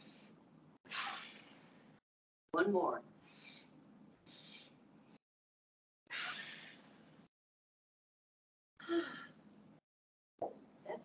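A woman breathes out audibly through a microphone.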